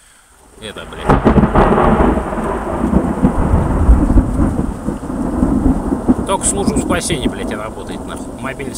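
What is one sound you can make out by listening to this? Rain pours down outdoors.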